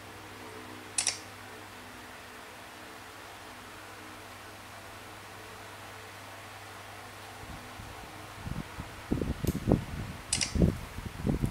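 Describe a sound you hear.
A game plays short sound effects through a small phone speaker.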